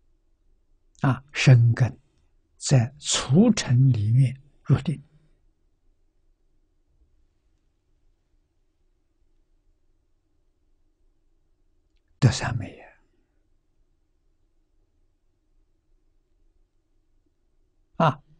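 An elderly man speaks calmly through a microphone, with long pauses.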